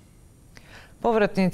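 A woman speaks calmly into a microphone, close by.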